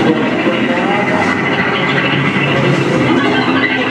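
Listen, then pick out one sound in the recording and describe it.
An electric bass guitar plays loud, deep notes.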